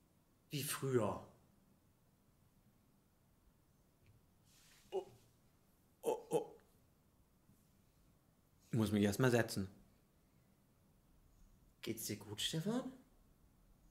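A man speaks slowly into a microphone in short phrases, with long pauses between them.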